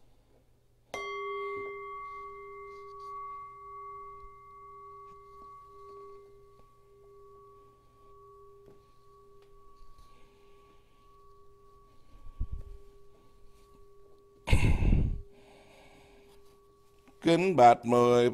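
A small bell is struck once and rings out slowly, fading.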